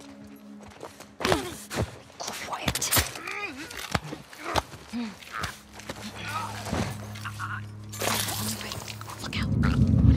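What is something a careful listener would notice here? A young woman grunts and strains in a close struggle.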